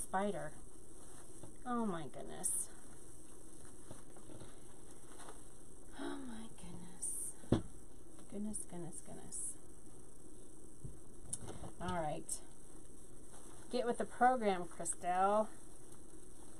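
A woman talks calmly and close by, in short bursts.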